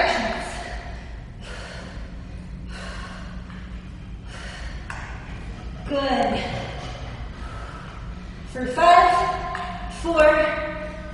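A young woman breathes hard as she exercises.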